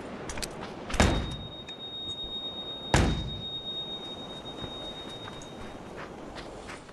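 A stun grenade bursts with a loud bang, leaving a high ringing.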